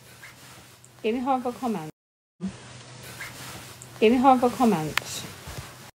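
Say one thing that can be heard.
A middle-aged woman speaks calmly and close up into a phone microphone.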